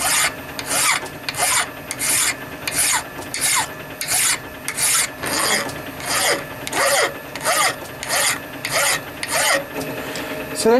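A metal file rasps back and forth across metal in steady strokes.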